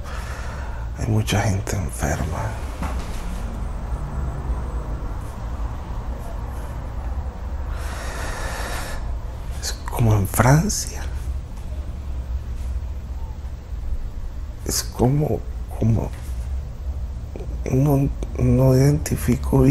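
A middle-aged man speaks calmly close by.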